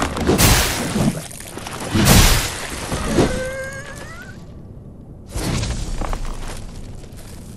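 Heavy weapon blows land with loud thuds and clangs.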